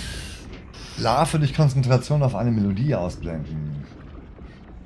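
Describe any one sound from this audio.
A young man speaks animatedly, close to a microphone.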